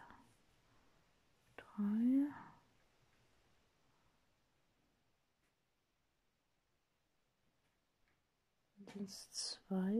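Thread rasps softly as a needle is pulled through cloth.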